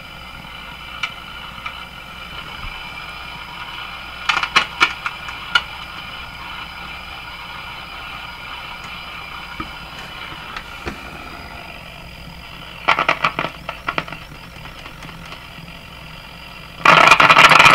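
Metal parts of a chassis clank and rattle as hands handle them.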